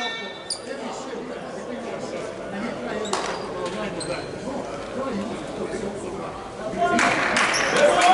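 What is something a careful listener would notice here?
Volleyballs thud and slap in a large echoing hall.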